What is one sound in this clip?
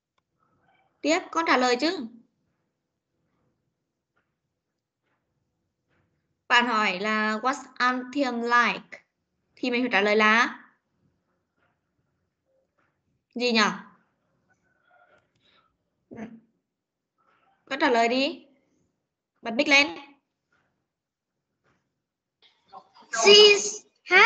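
A woman speaks over an online call in short, clear phrases with pauses between them.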